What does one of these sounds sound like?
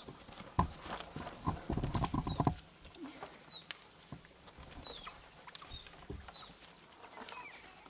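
Paws scrabble on loose pebbles.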